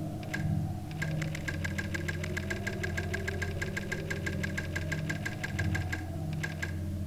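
A telephone rings with a rapid electric trill.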